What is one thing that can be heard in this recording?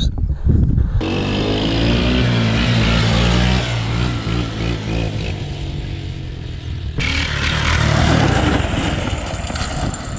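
A quad bike engine revs nearby.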